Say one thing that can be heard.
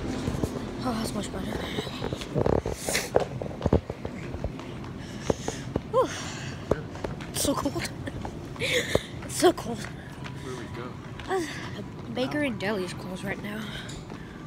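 A boy talks close to a phone microphone, loudly and with animation.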